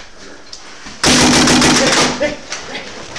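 A paintball gun fires a rapid burst close by.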